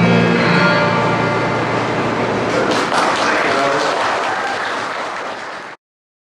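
An acoustic guitar is strummed through loudspeakers.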